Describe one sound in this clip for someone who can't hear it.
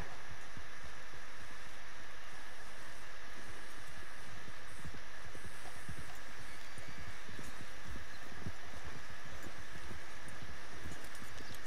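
Horse hooves thud softly on grass.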